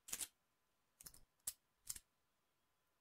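Short game menu clicks and swishes sound in quick succession.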